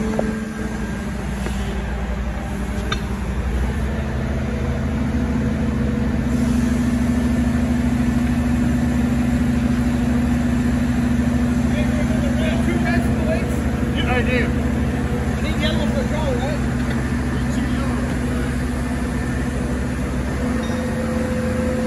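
A machine engine hums steadily nearby.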